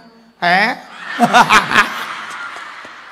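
A man laughs heartily into a microphone.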